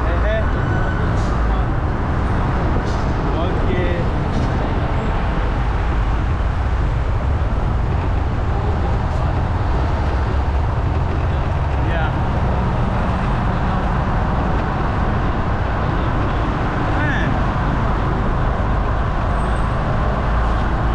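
Traffic hums and rolls past nearby.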